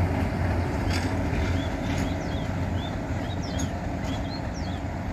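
A diesel locomotive rumbles and clatters past on the rails.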